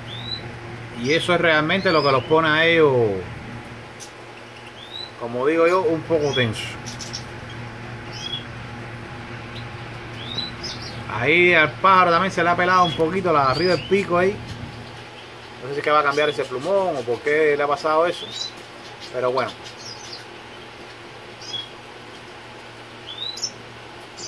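A small songbird chirps in short, high calls now and then.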